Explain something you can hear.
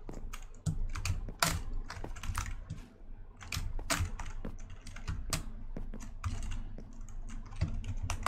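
Blocks crunch and break with short, quick knocks.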